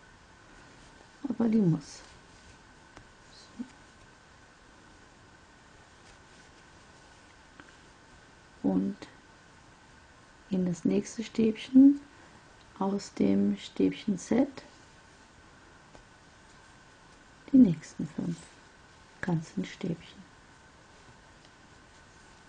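A crochet hook softly rustles through yarn.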